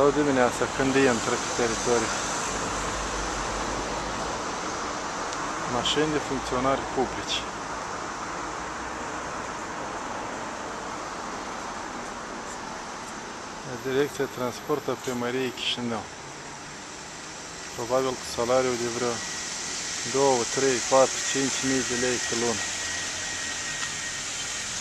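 A car engine hums as a car drives slowly past close by.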